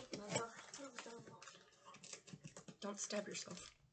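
Scissors snip at tape.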